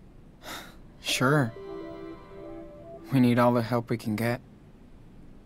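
A teenage boy speaks softly and close by.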